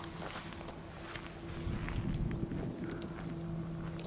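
Footsteps thud on grass close by.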